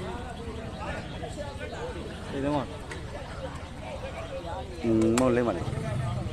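A crowd of men and boys chatters and calls out outdoors.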